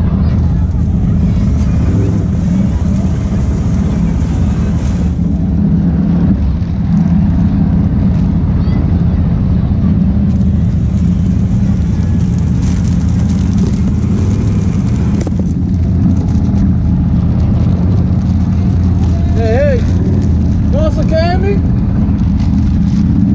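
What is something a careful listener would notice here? An off-road vehicle engine rumbles steadily up close.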